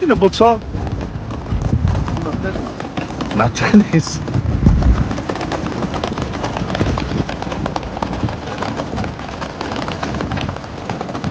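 Suitcase wheels rattle steadily over paving stones.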